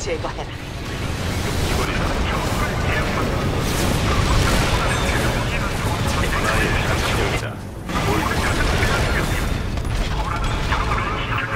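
Gunfire and explosions crackle in a video game battle.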